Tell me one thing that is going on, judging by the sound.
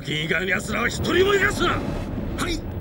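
A man shouts orders loudly.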